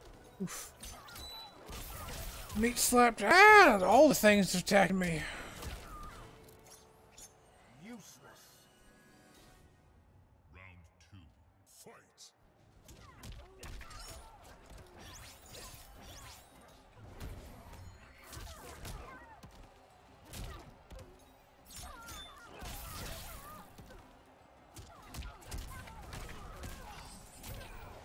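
Punches and kicks land with heavy thuds in a game fight.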